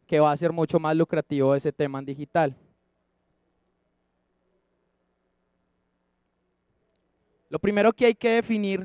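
A man speaks steadily into a microphone, with pauses.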